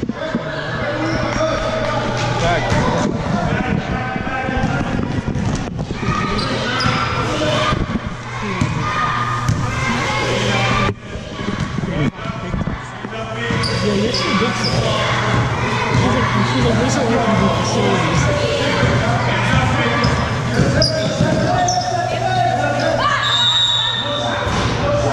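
A crowd of children and adults shouts and chatters throughout.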